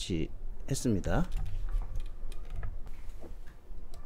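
A small plug clicks into a laptop's port.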